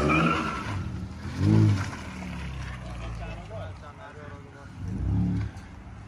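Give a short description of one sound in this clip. A car engine revs loudly in bursts.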